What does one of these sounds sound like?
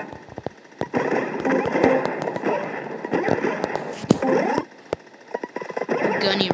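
Short electronic blips and hopping sounds from a video game play in quick succession.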